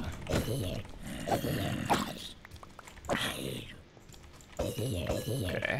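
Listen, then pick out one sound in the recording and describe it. A zombie groans and grunts low.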